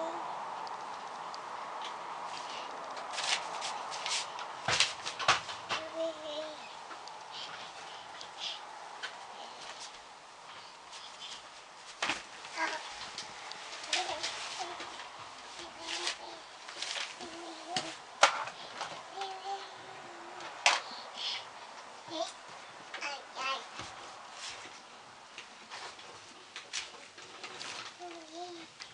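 Hands softly rub and squeeze a bare foot.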